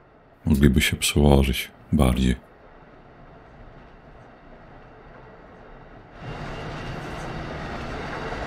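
A train rumbles along the tracks, growing louder near the end.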